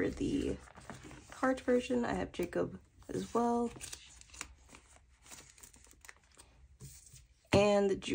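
Plastic binder sleeves crinkle and rustle under handling fingers.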